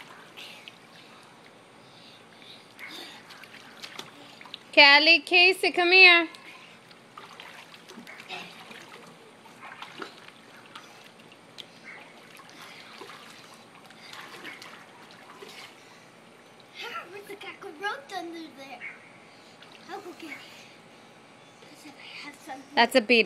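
Water splashes and sloshes as children move about in a pool.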